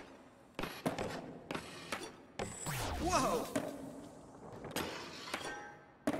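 A skateboard grinds along a metal rail.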